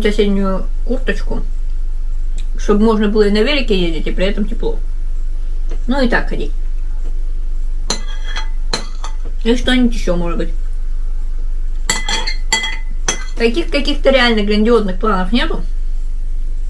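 A woman talks calmly and close by.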